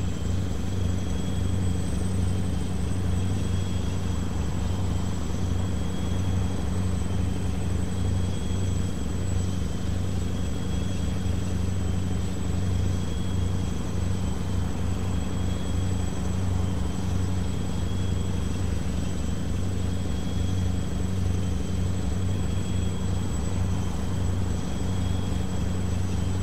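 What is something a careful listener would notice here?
A truck engine hums steadily at cruising speed.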